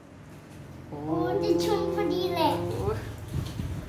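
A small child laughs loudly.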